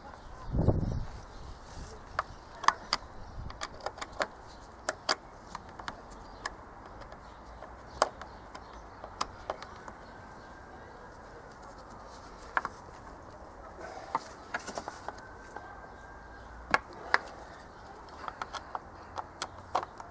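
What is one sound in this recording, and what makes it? Gloved hands click and knock against plastic engine parts.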